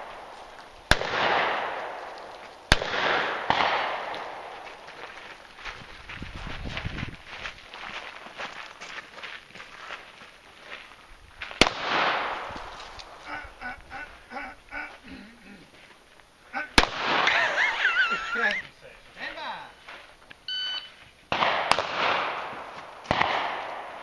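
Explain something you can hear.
Pistol shots crack one at a time outdoors, each echoing off into the distance.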